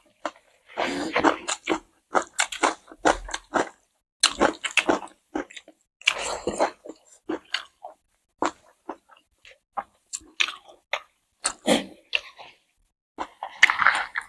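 A man chews food loudly and wetly close to a microphone.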